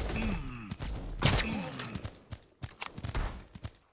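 A crossbow shot twangs in a video game.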